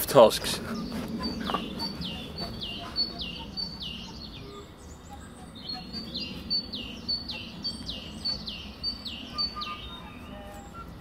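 A knife shaves and scrapes a stick of wood in repeated strokes.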